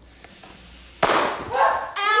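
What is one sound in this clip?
A young woman whispers close by.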